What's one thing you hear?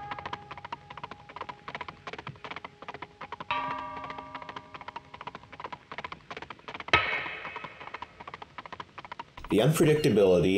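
A wooden loom clacks with quick rapid knocks.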